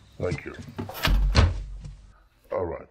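A door slams shut.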